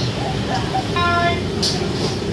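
A payment terminal beeps briefly.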